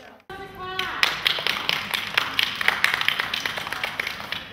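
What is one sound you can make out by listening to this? A woman claps her hands in rhythm.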